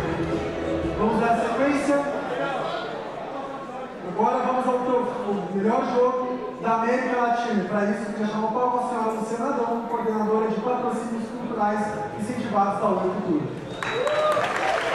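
A young man speaks calmly into a microphone, heard over loudspeakers in a large hall.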